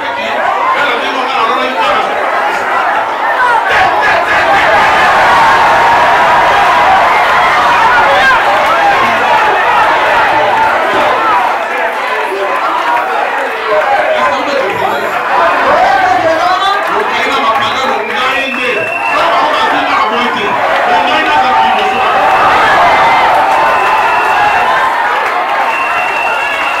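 A man preaches loudly with animation through a microphone, in a large echoing hall.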